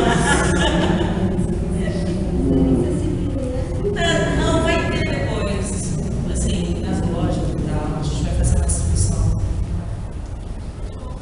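A woman speaks with animation into a microphone, heard over a loudspeaker.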